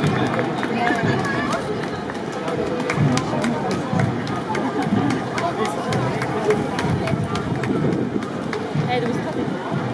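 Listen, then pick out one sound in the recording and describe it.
Wooden clappers click sharply in a steady rhythm.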